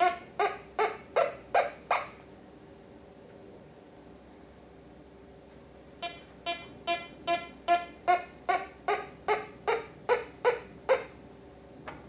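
A metal detector beeps in quick repeated bursts.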